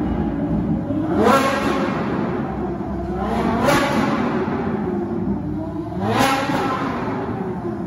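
A car engine revs hard in rising bursts.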